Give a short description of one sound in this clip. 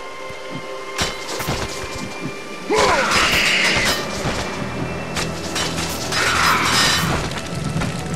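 Swinging blades whoosh and strike with sharp impacts.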